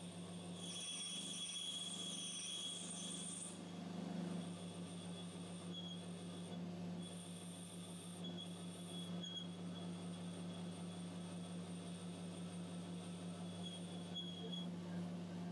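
A cutting tool whines thinly against spinning metal.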